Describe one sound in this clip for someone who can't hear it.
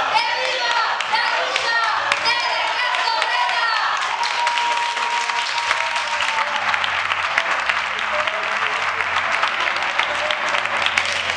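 A crowd claps along rhythmically.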